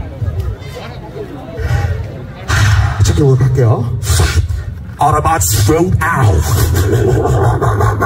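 A thumping beat with deep bass plays over loudspeakers.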